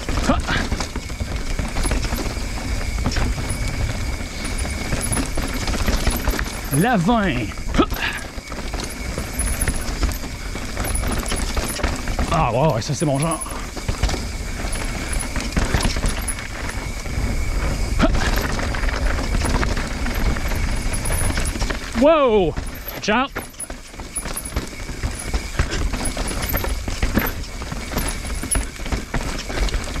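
A bicycle chain and frame clatter over bumps.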